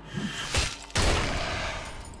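A fiery explosion bursts with a loud whoosh.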